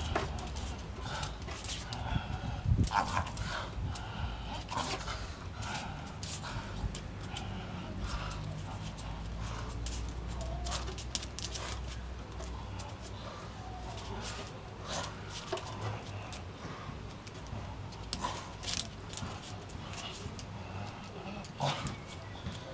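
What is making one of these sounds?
A dog's paws scrape and patter on paving stones.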